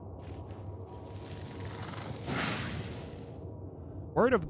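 A flashlight gives a short, rising whoosh as its beam flares.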